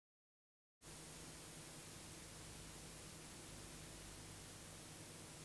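Tape static hisses steadily.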